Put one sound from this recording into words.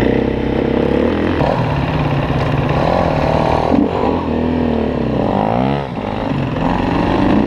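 A dirt bike engine revs and idles up close.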